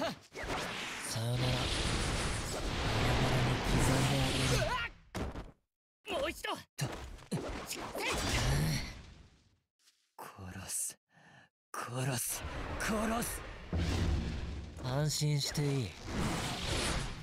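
Magical attacks burst and roar loudly.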